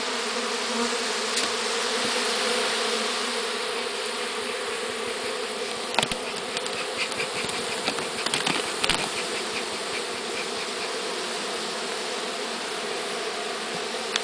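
Many bees buzz steadily close by.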